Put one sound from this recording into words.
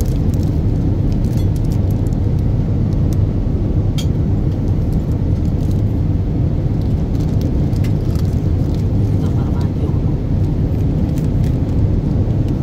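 A steady low engine drone hums throughout.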